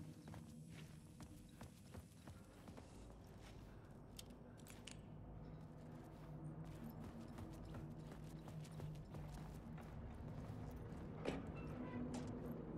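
Footsteps crunch slowly on gravel and stone.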